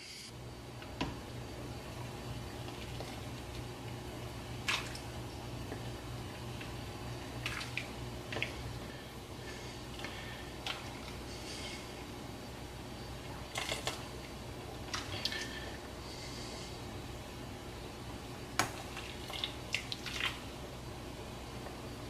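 A ladle clinks against a metal pot.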